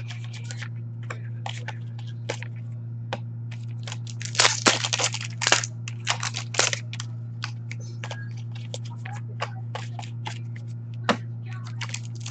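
Foil wrappers crinkle and tear as card packs are opened.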